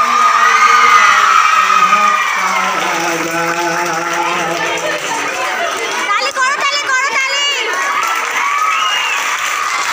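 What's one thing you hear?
A crowd of young girls claps along.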